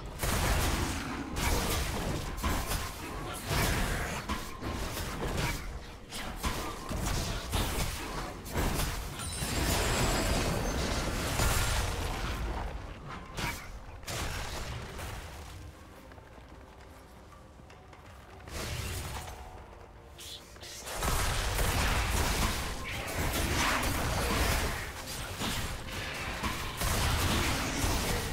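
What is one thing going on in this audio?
Game fight effects clash, zap and whoosh in rapid bursts.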